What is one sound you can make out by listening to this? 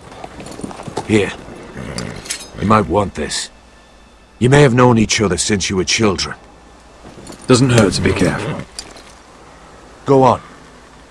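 A second man speaks in a low, friendly voice.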